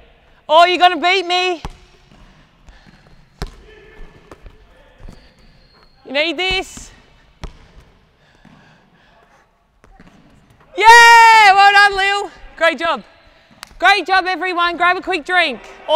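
A basketball bounces on a wooden court in an echoing hall.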